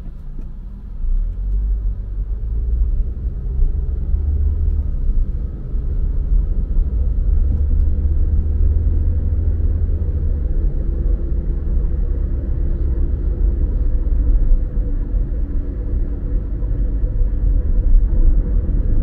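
A car engine hums louder as the car drives off and picks up speed.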